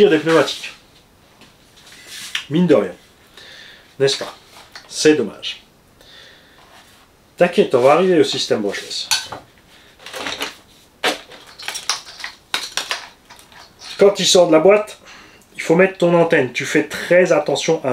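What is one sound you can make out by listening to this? A middle-aged man talks calmly and clearly into a close microphone.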